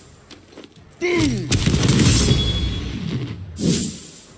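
A magical blast rings out with a bright shimmering burst.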